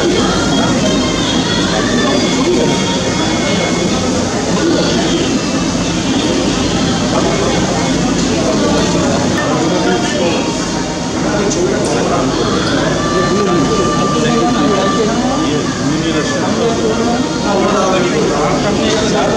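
A crowd of men and women murmurs and talks quietly.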